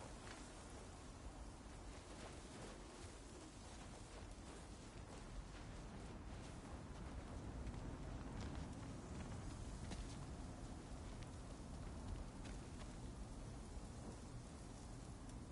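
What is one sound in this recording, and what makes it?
Footsteps crunch on snow at a steady walking pace.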